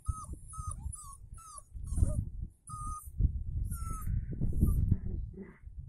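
Puppies squeak and whimper in short high cries.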